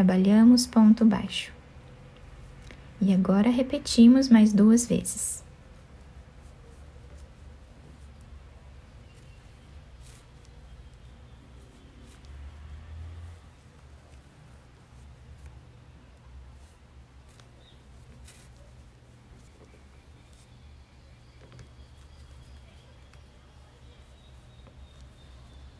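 A crochet hook softly scrapes and clicks through yarn.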